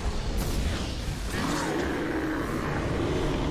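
Weapons clash sharply.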